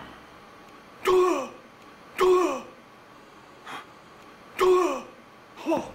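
A man shouts loudly in short bursts nearby.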